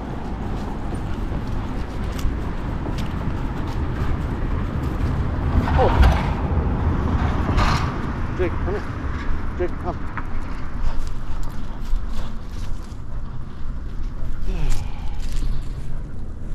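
Metal tags on a dog's collar jingle lightly as the dog walks.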